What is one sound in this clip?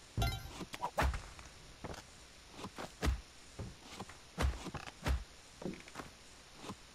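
Short game sound effects thump and click.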